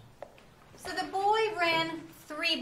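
A young woman speaks with animation to a class.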